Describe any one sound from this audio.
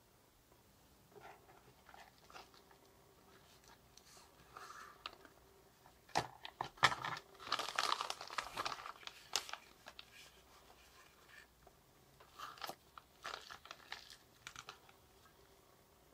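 A plastic bubble pouch crinkles and rustles in someone's hands.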